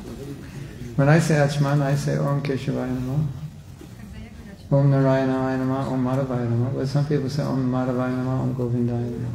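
An elderly woman chants in long, drawn-out notes through a microphone.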